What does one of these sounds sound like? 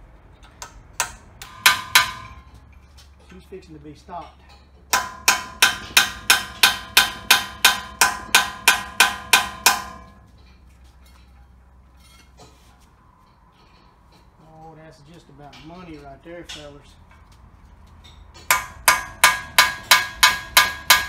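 A hammer strikes metal with sharp, ringing clangs in quick, steady bursts.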